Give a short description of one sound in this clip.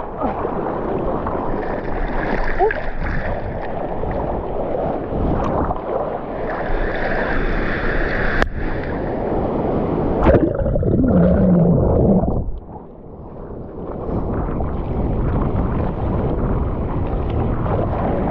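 Water splashes against a board as arms paddle.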